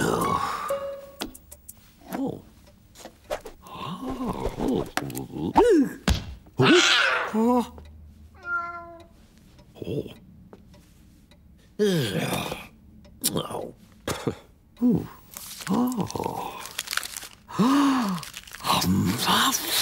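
A man mumbles and grunts to himself in a cartoon voice.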